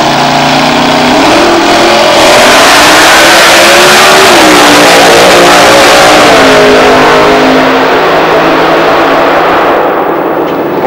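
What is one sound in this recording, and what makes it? A nitro-burning dragster launches down the strip at full throttle with a deafening roar.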